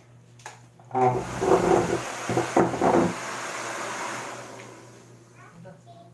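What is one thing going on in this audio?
A hair dryer blows with a steady whoosh.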